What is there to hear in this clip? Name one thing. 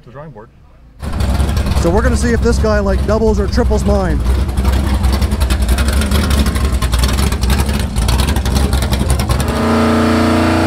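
A car engine rumbles loudly as the car rolls slowly past.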